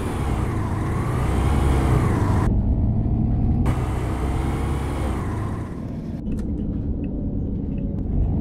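A bus engine hums and drones steadily, rising and falling in pitch.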